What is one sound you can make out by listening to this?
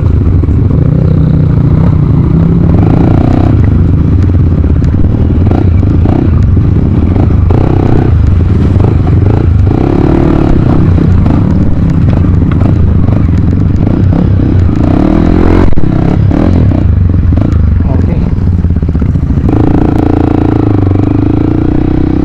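A dirt bike engine revs loudly close by.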